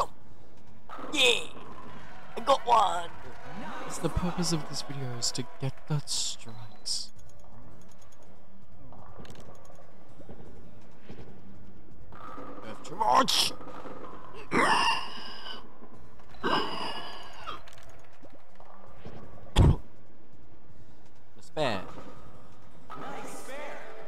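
A bowling ball crashes into pins in a video game.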